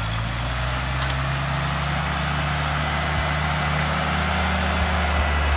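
An old tractor engine chugs steadily close by.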